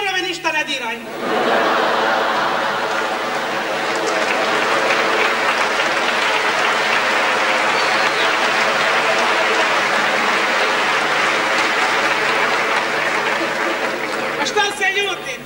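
A large audience applauds and cheers in an echoing hall.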